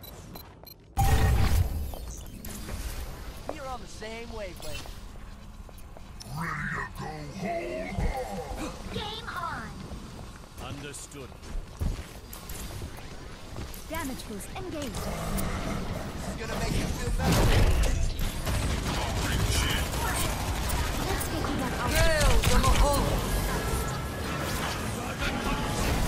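An energy weapon crackles and zaps in quick bursts.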